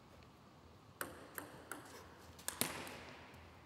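A ping-pong ball bounces with light, sharp taps in a large room.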